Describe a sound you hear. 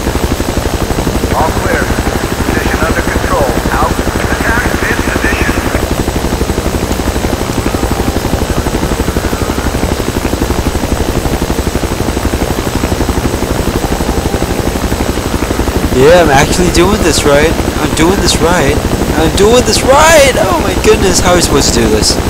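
A helicopter's rotor thumps steadily throughout.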